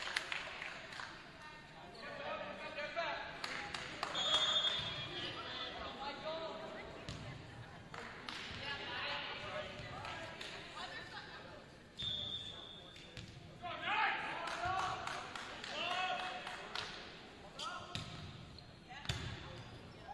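A volleyball is hit with sharp thuds.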